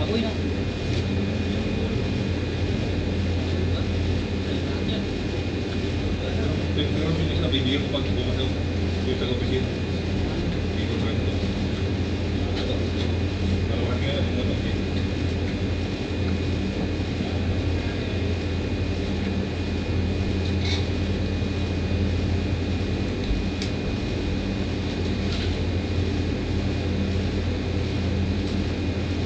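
Air conditioning units hum steadily outdoors.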